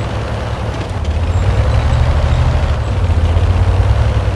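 A tank's engine revs harder and louder.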